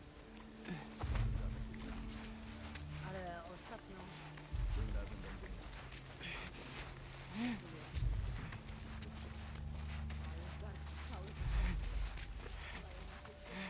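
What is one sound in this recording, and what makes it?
Grass rustles as someone crawls through it.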